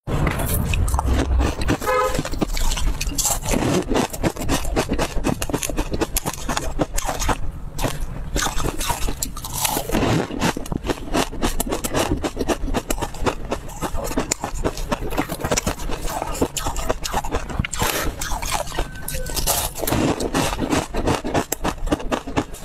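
A young woman chews crunchy food loudly and close up.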